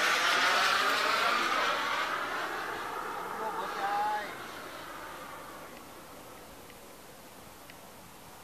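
A jet engine roars overhead and fades into the distance.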